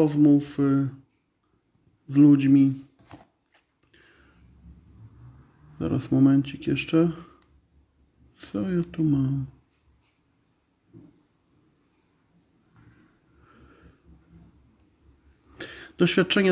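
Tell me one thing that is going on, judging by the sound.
A man speaks calmly and close up, in short bursts with pauses.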